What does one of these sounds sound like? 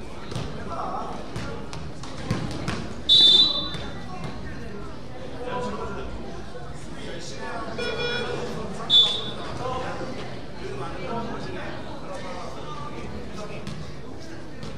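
A basketball bounces in a large echoing gym.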